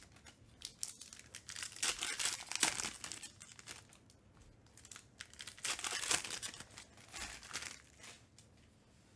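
Foil packs crinkle and rustle as they are torn open.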